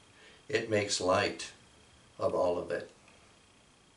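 An elderly man reads aloud calmly, close by.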